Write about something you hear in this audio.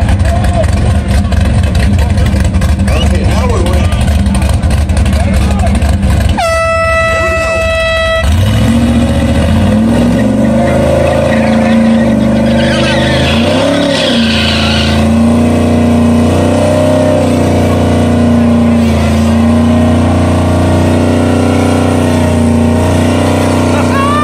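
A loud car engine rumbles and revs up close.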